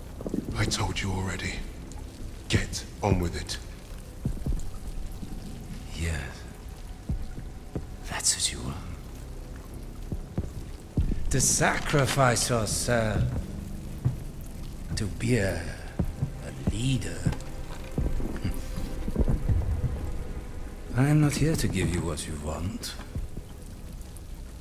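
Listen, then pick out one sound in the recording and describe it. Rain pours steadily.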